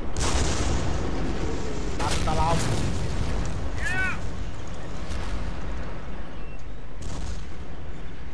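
Shells burst with sharp blasts.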